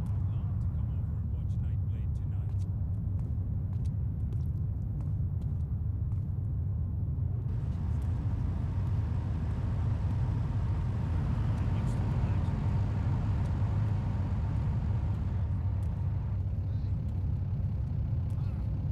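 Footsteps tap on pavement at a walking pace.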